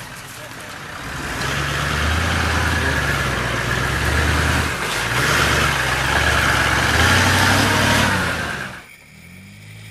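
A truck engine rumbles and revs up close.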